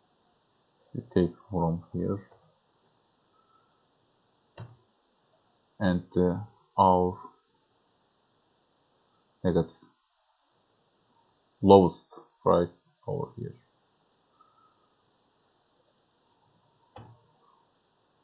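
A man speaks calmly in short bursts, close to a headset microphone.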